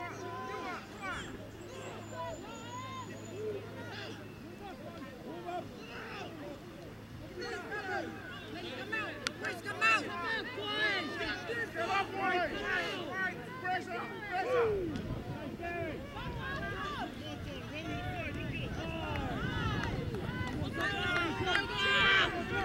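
Boys shout and call out to each other outdoors.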